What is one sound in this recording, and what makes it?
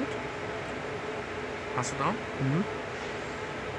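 A button on a charging unit is pressed with a soft click.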